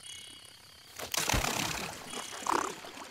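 Water splashes under running feet.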